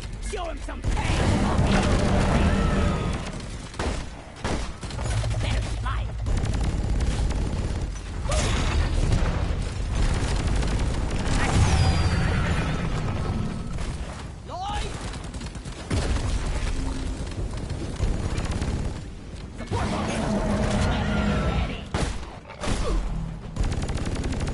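Rapid energy weapon fire crackles and buzzes.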